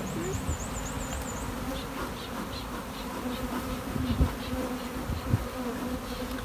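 A bee smoker puffs in short bursts.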